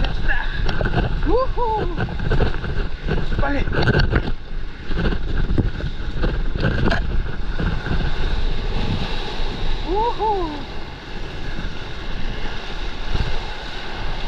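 A paddle dips and churns through the water.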